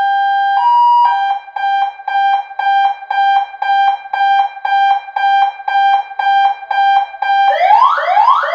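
An electronic siren sounds rapid pulsing beeps.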